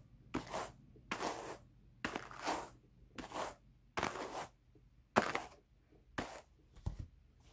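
Wire carders brush through wool with quick, scratchy strokes.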